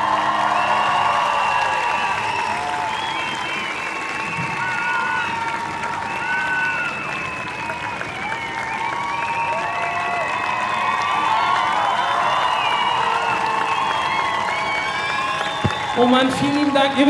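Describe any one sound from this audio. A band plays music over loudspeakers.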